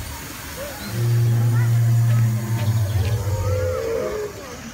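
An animatronic dinosaur lets out a deep, loud roar.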